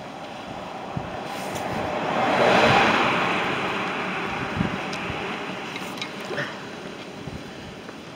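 A vehicle drives past close by and fades away down the road.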